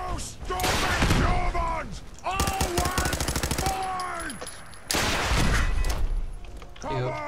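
A heavy gun fires in loud, rapid bursts.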